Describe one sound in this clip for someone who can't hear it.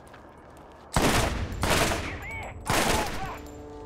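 A rifle fires a few loud, echoing shots.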